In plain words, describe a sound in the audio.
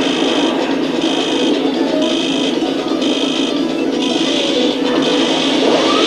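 A giant robot fires an energy weapon with a pulsing hum.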